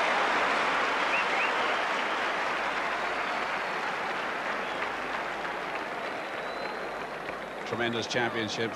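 A large stadium crowd cheers and applauds in the open air.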